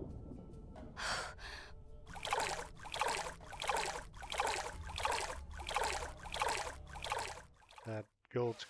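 Feet splash rhythmically through shallow water.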